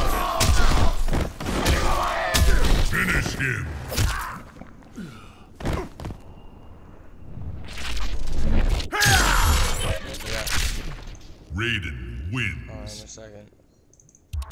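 A young man talks with animation into a close headset microphone.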